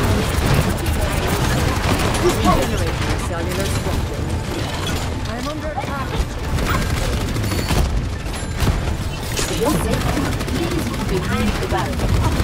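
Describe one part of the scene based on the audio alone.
A rapid energy weapon fires in quick bursts.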